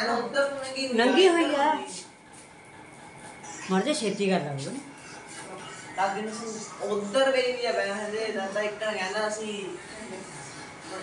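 A teenage boy answers nearby.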